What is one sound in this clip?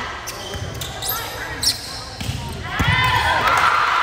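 A volleyball is struck with a dull thump.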